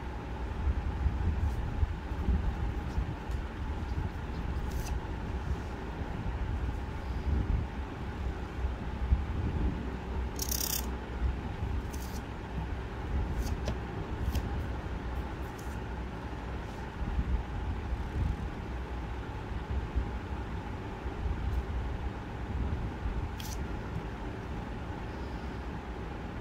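A brush pen scratches softly on paper.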